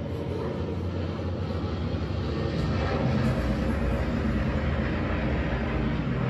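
Bomber aircraft engines drone steadily overhead.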